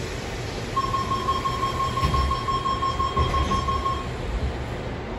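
A door warning tone beeps steadily.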